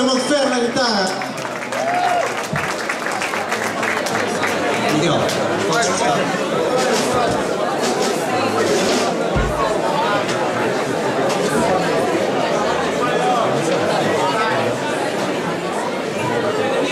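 A rock band plays live through loudspeakers in a large echoing hall.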